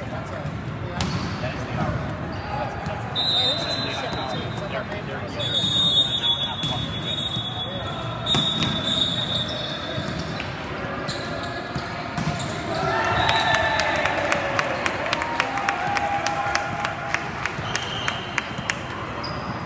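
A volleyball is struck with sharp smacks that echo in a large hall.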